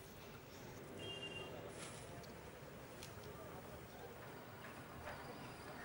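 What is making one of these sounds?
Dry palm fronds rustle as they are handled.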